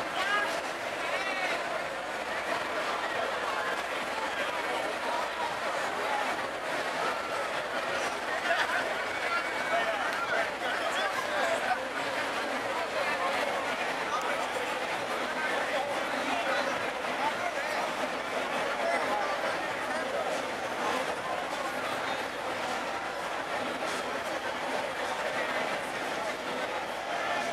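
Men talk with each other nearby.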